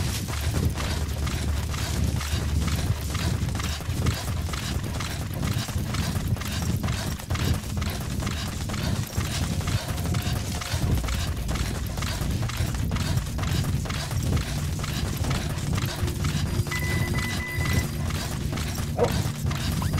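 Footsteps run quickly through dry grass.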